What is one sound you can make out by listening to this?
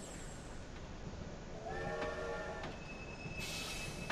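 A small train rolls along a track.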